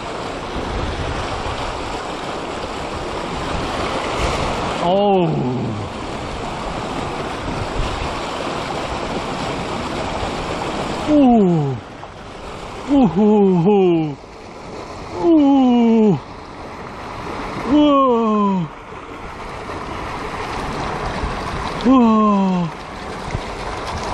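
Water rushes and splashes steadily over rocks nearby.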